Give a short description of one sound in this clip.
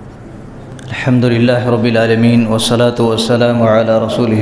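A man begins to chant loudly in a long, drawn-out voice through a microphone.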